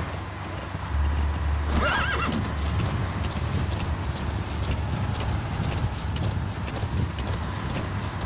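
A horse's hooves pound the ground at a gallop.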